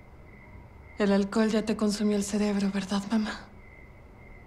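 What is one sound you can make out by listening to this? A woman answers calmly, close by.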